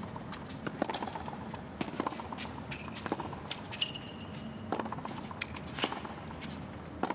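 Tennis shoes squeak and scuff on a hard court.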